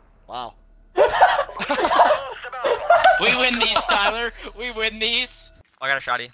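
A young man laughs loudly and excitedly into a close microphone.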